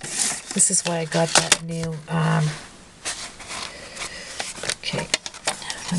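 Paper rustles and slides under fingers.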